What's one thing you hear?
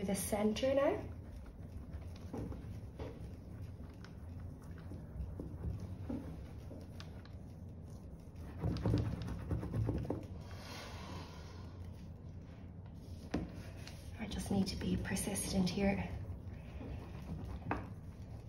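A spoon rubs and scrapes over paper.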